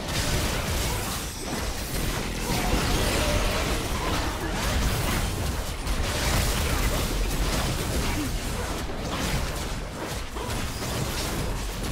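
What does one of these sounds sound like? Magic blasts and weapon clashes crackle and boom in a busy fight.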